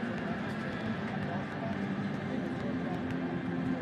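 A volleyball thumps as a player bounces it before serving.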